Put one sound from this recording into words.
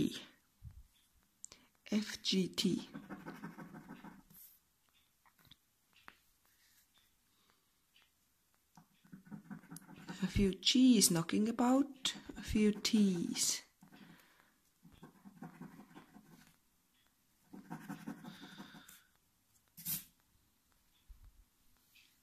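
A coin scratches at a scratch card in short strokes.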